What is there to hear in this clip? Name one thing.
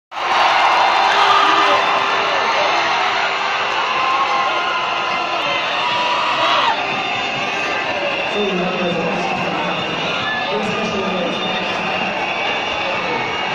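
Music plays loudly over loudspeakers in a big echoing arena.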